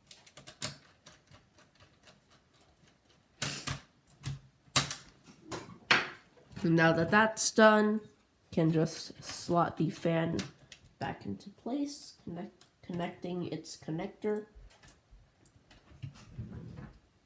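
Small metal and plastic parts click and clack as they are handled.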